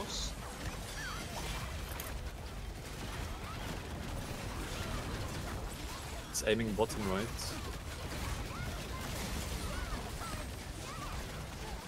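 Spell effects crash and rumble in a game battle.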